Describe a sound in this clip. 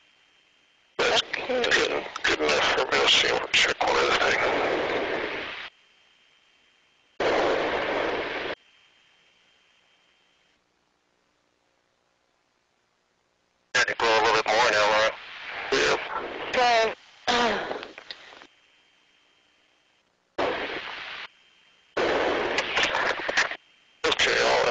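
A man speaks calmly in short bursts over a crackly helmet radio intercom.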